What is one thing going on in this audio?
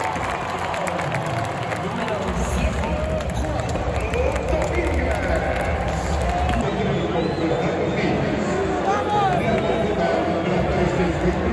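A large stadium crowd cheers and roars loudly all around.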